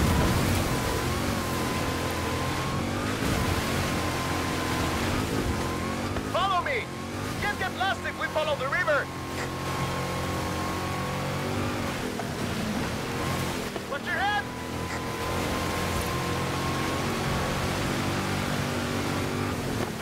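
Tyres splash through water and mud.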